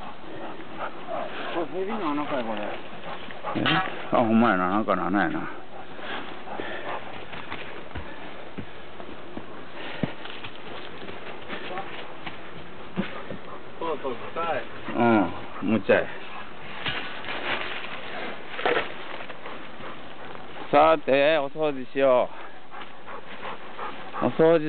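A dog rustles through dry leaves.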